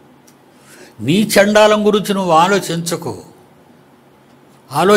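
An elderly man speaks emphatically into a microphone close by.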